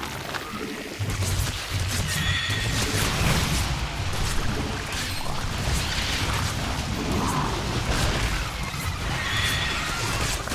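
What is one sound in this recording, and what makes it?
Game gunfire and explosions crackle in a busy battle.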